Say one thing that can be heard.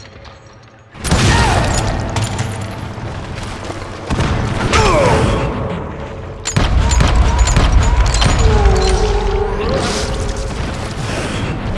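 A revolver fires loud shots that echo.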